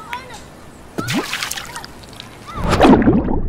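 Water splashes onto pavement.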